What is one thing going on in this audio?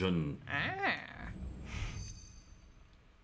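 A stone pedestal chimes and whirs as it lights up.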